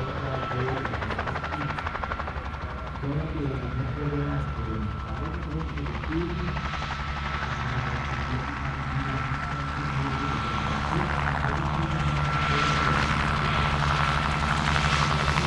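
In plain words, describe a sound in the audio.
A small engine whines steadily at high pitch.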